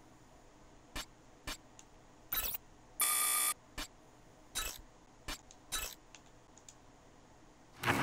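Short interface clicks and beeps sound one after another.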